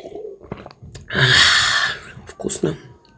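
A middle-aged woman slurps a drink from a mug.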